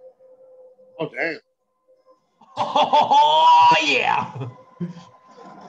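A young man laughs loudly, close to a microphone.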